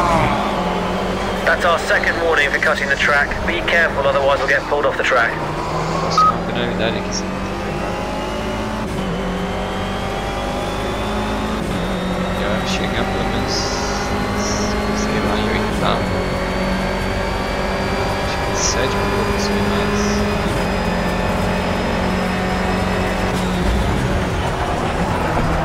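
A four-cylinder racing car engine revs hard and accelerates through the gears.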